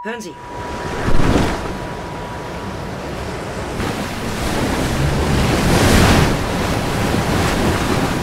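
Rough waves slosh and crash against a boat.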